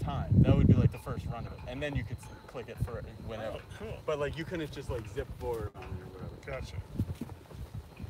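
A man talks with animation nearby, outdoors.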